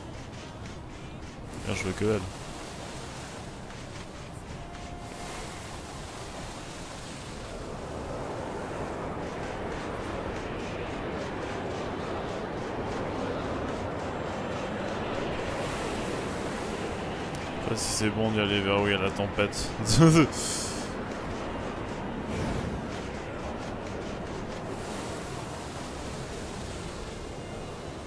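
Wind howls steadily across open sand.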